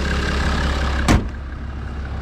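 A car hood slams shut.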